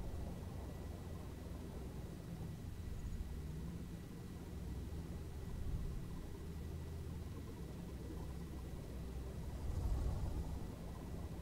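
A vehicle engine rumbles steadily as it drives along.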